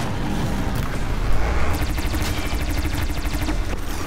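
Electric energy crackles and hums.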